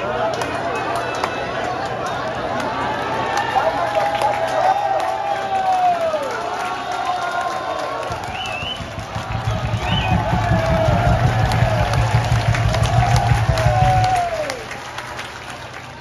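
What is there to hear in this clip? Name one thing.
A large stadium crowd chants and sings together loudly outdoors.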